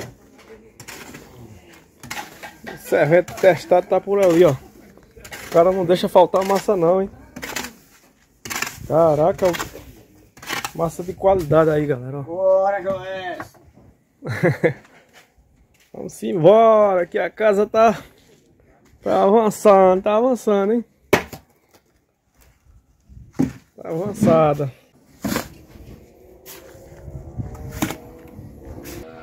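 A shovel scrapes and slaps through wet mortar on hard ground.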